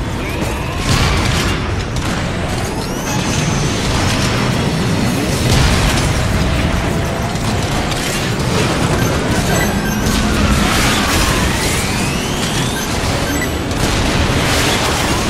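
Gunfire crackles repeatedly.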